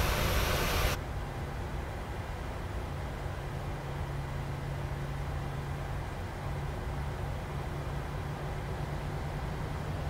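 A jet's engines hum low and muffled, heard from inside the cockpit.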